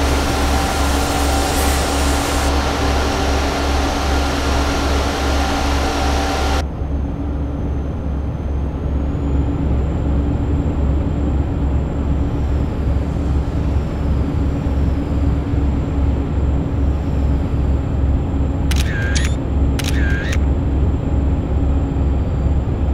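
A heavy truck engine drones steadily at highway speed.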